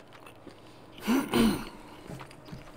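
A man hums briefly with pleasure, close by.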